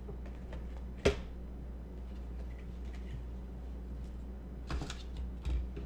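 Wooden boards knock lightly as they are handled.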